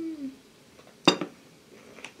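A cup is set down on a table with a knock.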